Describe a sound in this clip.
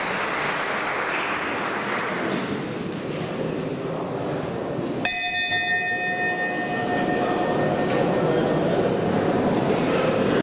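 A crowd of people murmurs quietly in a large echoing hall.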